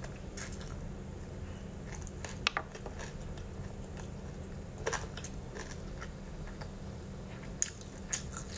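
A young woman chews sticky food close to a microphone with wet smacking sounds.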